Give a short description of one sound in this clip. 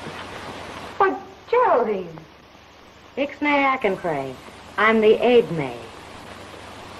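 A young woman speaks loudly and with feeling.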